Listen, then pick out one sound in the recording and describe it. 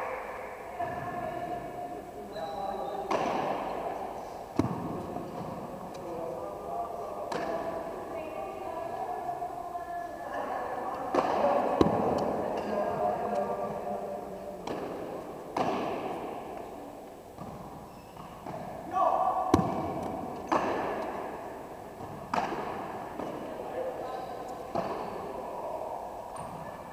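Young people chatter and call out, echoing in a large hall.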